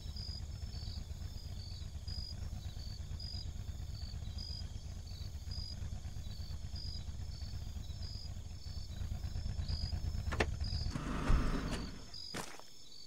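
A vehicle engine idles with a low, steady rumble, then revs briefly and cuts off.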